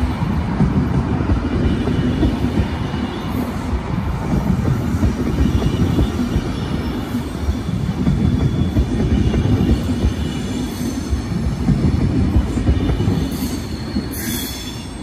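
A double-deck electric passenger train rumbles past close by.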